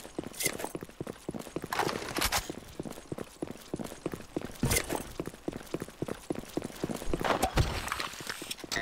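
Quick footsteps tap on a hard floor.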